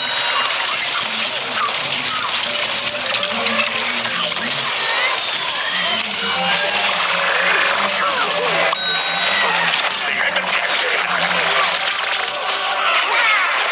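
Magic zaps and explosions burst and crackle.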